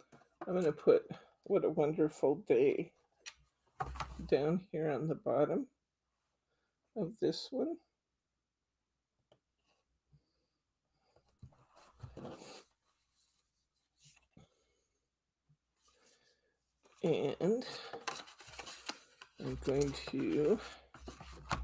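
Paper rustles as a card is handled.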